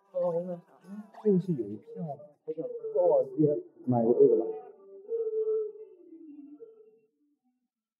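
A young man talks casually up close.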